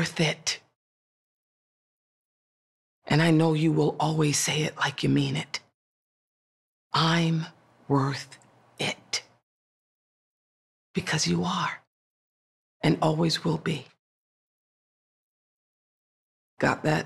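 A woman speaks with animation close to a microphone, in short bursts with pauses.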